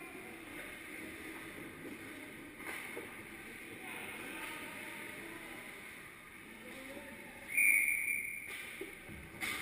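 Ice skates scrape across the ice in a large echoing rink.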